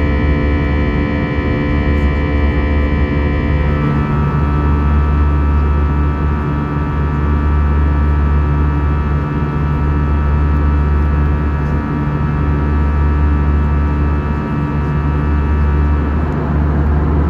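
A high engine whine rings over the roar and changes pitch.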